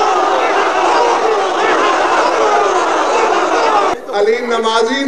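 A man speaks forcefully into a microphone, his voice loud and echoing.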